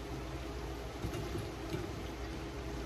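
Fried plantain slices are set down with a spatula on a plate.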